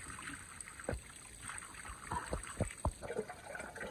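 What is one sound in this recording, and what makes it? Water trickles and splashes from a small spring onto mud.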